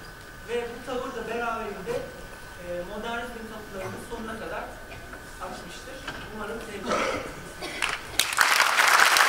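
A man speaks through a microphone with animation in a large hall.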